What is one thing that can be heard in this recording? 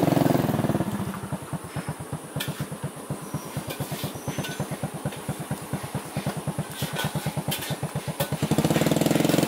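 A motorcycle engine runs and putters nearby.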